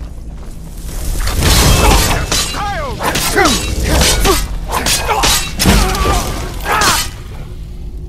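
Flames roar and crackle during a fight.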